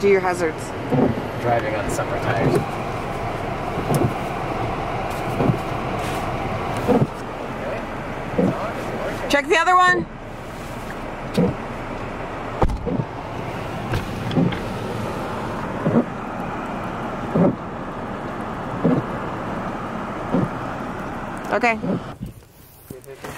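Strong wind roars steadily outside a car.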